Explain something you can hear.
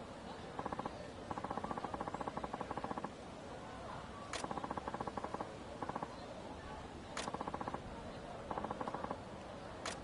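Rapid soft electronic blips tick in short bursts.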